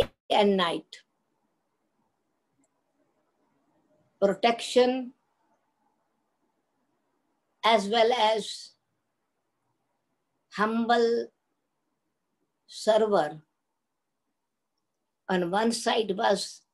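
An elderly woman speaks slowly and calmly in short phrases with long pauses, close to the microphone.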